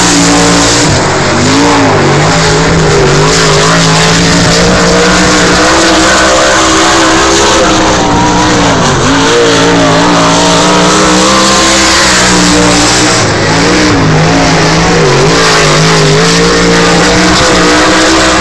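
Racing car engines roar and rev loudly, rising and falling in pitch.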